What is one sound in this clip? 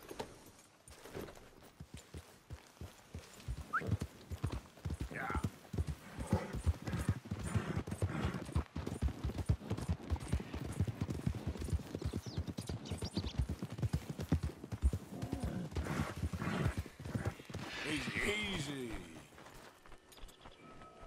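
A horse gallops, its hooves thudding fast and steady on soft ground.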